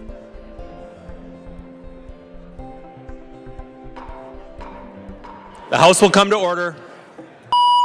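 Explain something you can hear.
People murmur and move about in a large echoing hall.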